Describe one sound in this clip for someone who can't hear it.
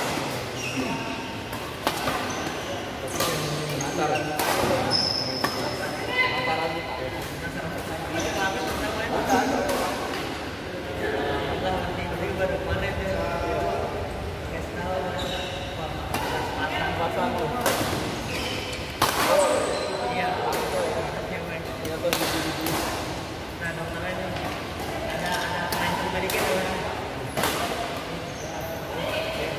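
Voices of young men chatter in a large echoing hall.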